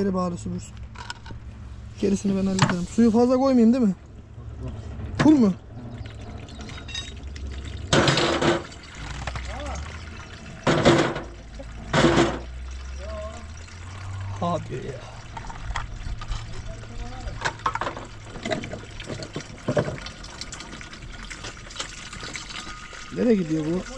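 Water pours from a hose into a plastic tank.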